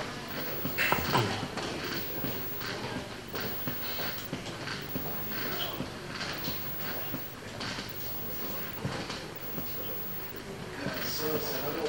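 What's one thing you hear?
Many people murmur quietly in a large room.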